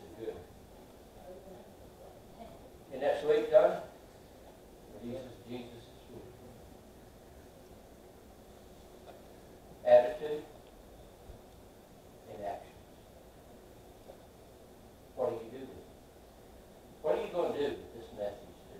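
An elderly man speaks in short bursts with long pauses, in a room with a slight echo.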